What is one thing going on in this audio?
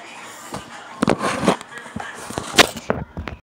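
Rustling and bumping noises sound against the microphone.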